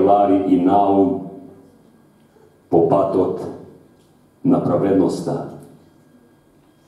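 An elderly man speaks with animation into a microphone in a hall with echo.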